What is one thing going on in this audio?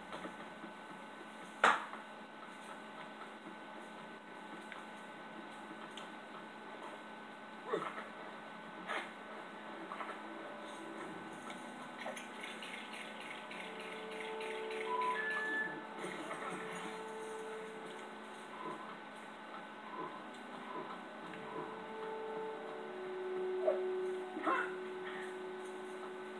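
Video game sound effects chime and clatter from a television speaker.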